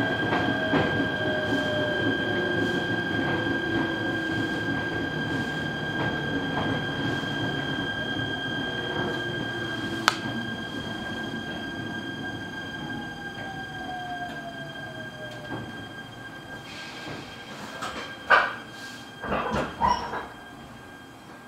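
A train rumbles steadily along the tracks from inside a carriage, slowly quietening as it slows.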